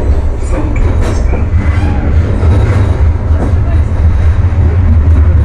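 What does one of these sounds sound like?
A tram rumbles steadily along rails.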